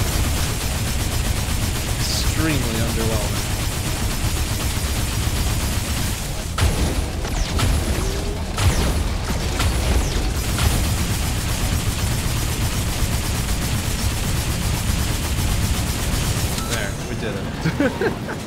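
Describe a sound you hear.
Guns fire rapidly with heavy, booming blasts.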